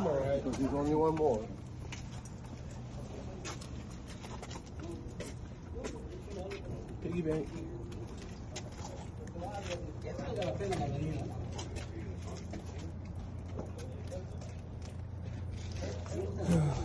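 A man speaks casually close by.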